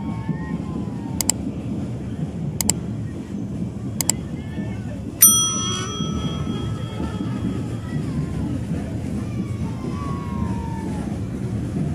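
A pickup truck engine rumbles low as the truck rolls slowly by.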